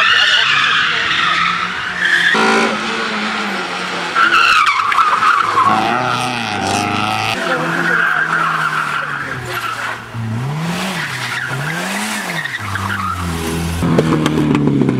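A car engine revs hard and rises and falls in pitch as the car races past.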